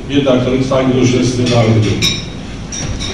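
A man speaks loudly into a microphone, his voice carried over loudspeakers in a large room.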